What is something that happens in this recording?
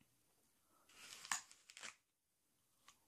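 An apple crunches as it is bitten.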